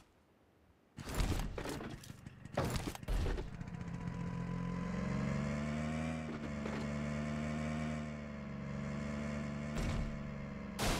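A motorbike engine starts and revs steadily as the bike rides along.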